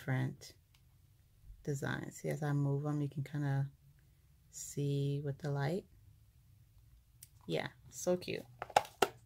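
A plastic case clicks and rattles as it is handled.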